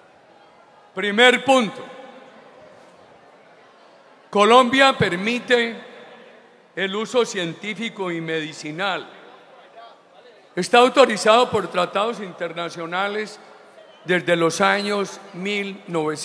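An elderly man speaks with emphasis into a microphone, heard through loudspeakers outdoors.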